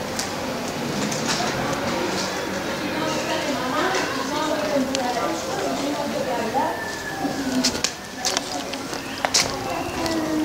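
Footsteps tap on paved ground outdoors.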